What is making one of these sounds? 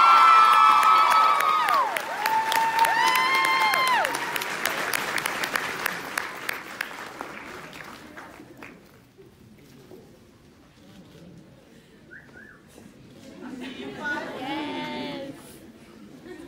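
Young women cheer and shout excitedly nearby.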